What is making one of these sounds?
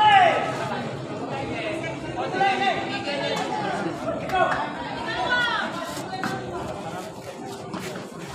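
A crowd of spectators shouts and chatters nearby, outdoors.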